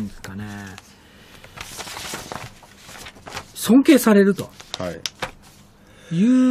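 A man speaks into a microphone in a conversational tone, close by.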